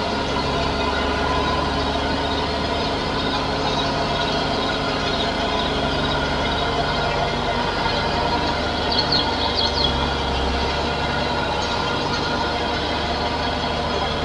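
A mower whirs as it cuts grass.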